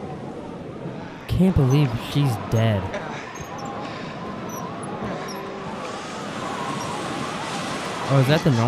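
Wind howls through a snowstorm.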